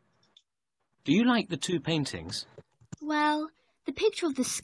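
A young woman speaks clearly through an online call.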